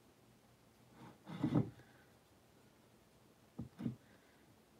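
Fingers rub and brush against a small figurine.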